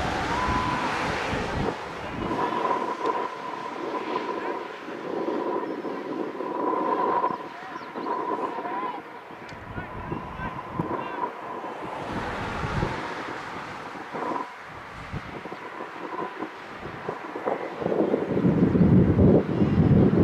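Adults talk and call out nearby outdoors.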